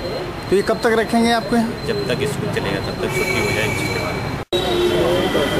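A man speaks calmly and close.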